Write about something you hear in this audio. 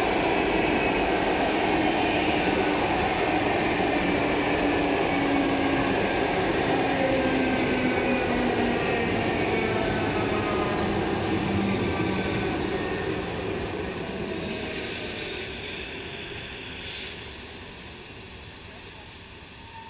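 A train's motors whine as it moves off.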